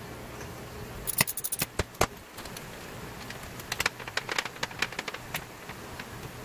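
Plastic pipe fittings click and rattle as hands adjust them.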